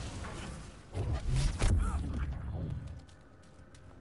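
A loud explosion booms and roars.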